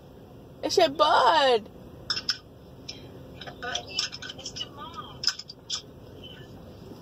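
A young child squeals and babbles through a phone speaker.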